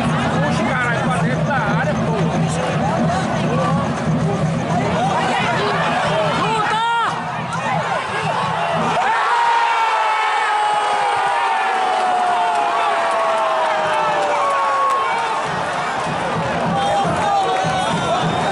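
A large stadium crowd roars and chants.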